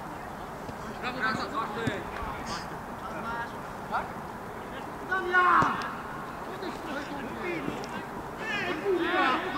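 Men shout to each other outdoors.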